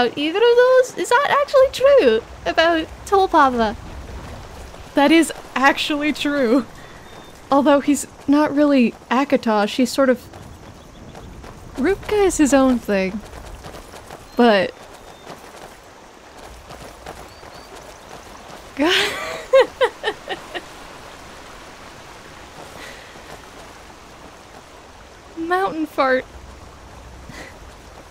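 Footsteps crunch steadily on a gravel path.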